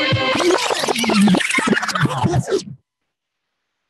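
A man speaks with animation into a microphone.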